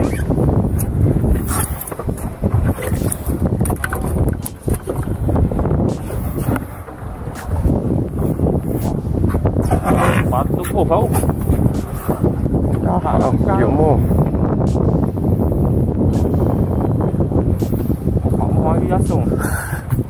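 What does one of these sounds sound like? Waves slap against the side of a small boat.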